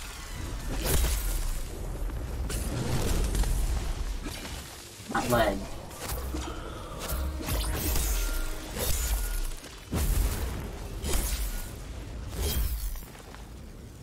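Heavy weapon blows strike a huge beast with sharp, booming impacts.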